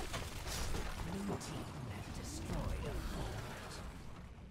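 A young man talks with animation into a microphone.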